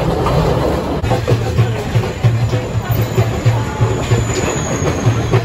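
A motor rickshaw engine putters nearby.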